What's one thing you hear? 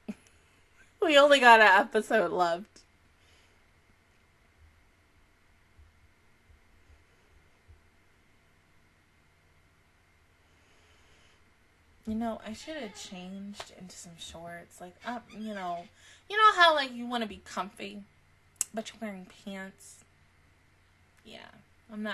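A young woman talks animatedly close to a microphone.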